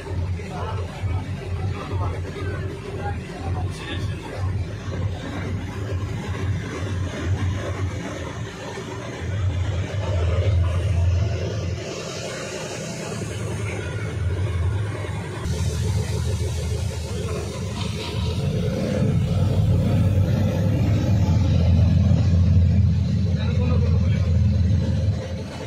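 A car engine rumbles steadily up close.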